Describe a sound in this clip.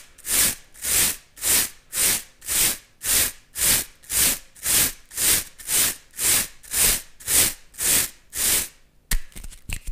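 Bristles brush against a microphone in a steady, even rhythm, very close.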